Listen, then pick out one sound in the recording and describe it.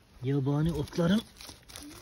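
A knife cuts through leafy plant stems.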